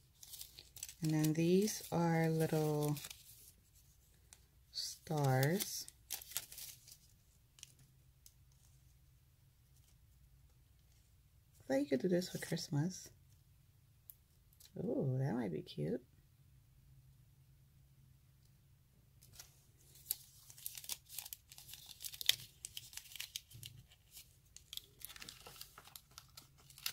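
Thin foil sheets crinkle and rustle as they are handled.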